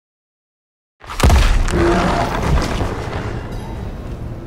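A sudden magical blast bursts and rings out.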